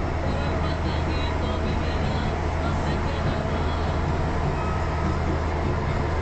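A vehicle engine hums steadily from inside the cab.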